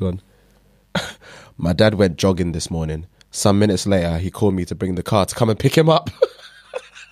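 A man reads out calmly into a close microphone.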